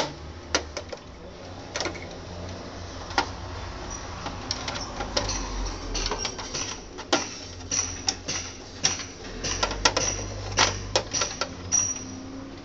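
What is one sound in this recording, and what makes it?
A screwdriver clicks and scrapes against plastic parts of a machine.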